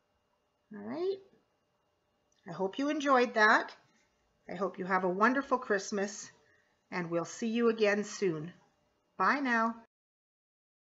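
A woman speaks calmly, close to the microphone.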